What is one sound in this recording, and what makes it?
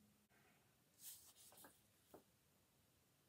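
Paper rustles as a comic book is handled.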